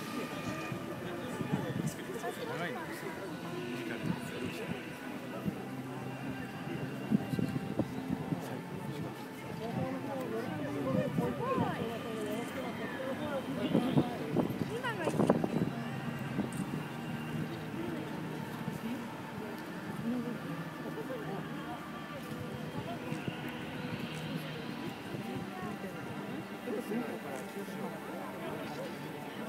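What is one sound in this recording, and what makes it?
A crowd of men and women chatter all around, outdoors.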